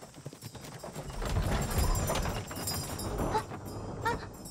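Wooden cart wheels rumble over the ground.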